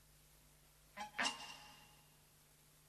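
A metal door handle clicks and rattles sharply.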